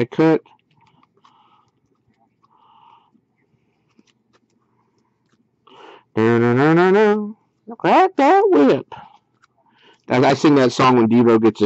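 Trading cards rustle and flick softly as they are flipped through one by one.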